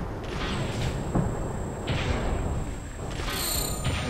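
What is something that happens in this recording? A laser rifle fires a sustained beam.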